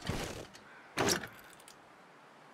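A wooden crate lid creaks open.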